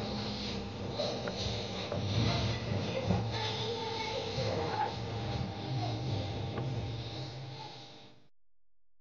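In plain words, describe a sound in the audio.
A young girl sings loudly through a microphone.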